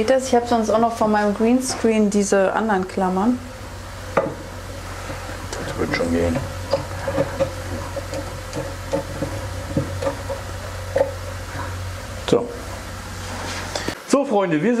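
A person talks with animation close by.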